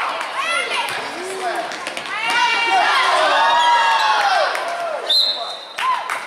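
Spectators cheer and shout loudly in an echoing gym.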